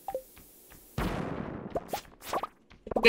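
A bomb explodes with a loud rumbling blast.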